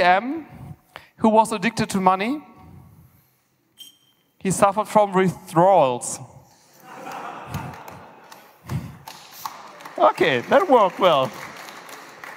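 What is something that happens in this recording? A man speaks animatedly through a microphone in a large echoing hall.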